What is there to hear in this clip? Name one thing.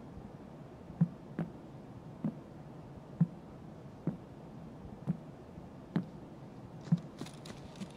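Heavy footsteps thud slowly on a wooden floor indoors.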